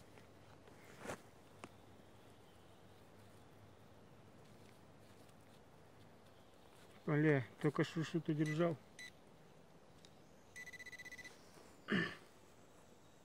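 A trowel scrapes and digs into dry soil.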